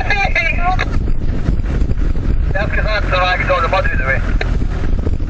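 A man shouts excitedly nearby.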